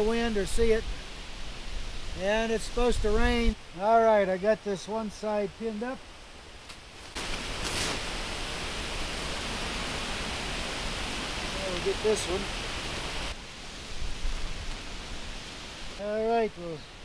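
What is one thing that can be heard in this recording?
An older man speaks with animation close by, outdoors.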